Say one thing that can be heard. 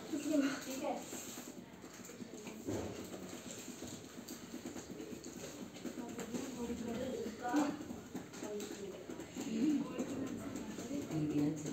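Children talk quietly nearby.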